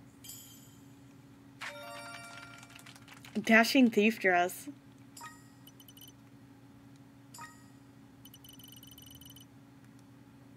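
Bright electronic game chimes ring out.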